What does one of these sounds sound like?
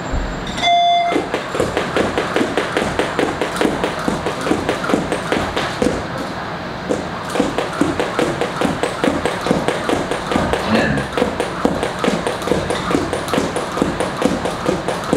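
A jump rope slaps the floor in a quick, steady rhythm.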